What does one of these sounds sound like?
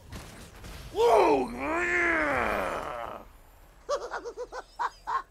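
A short triumphant game fanfare plays loudly.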